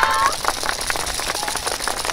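Wooden hand clappers rattle in a quick rhythm outdoors.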